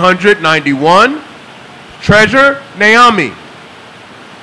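A young man speaks loudly, calling out.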